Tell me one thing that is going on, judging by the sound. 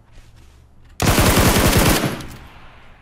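An automatic rifle fires a rapid, loud burst close by.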